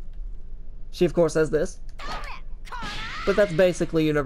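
Punches and energy blasts crash and whoosh in a fight.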